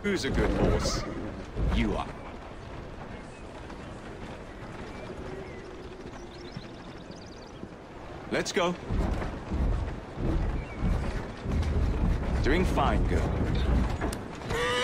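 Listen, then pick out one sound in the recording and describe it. Horse hooves clop on a cobbled street.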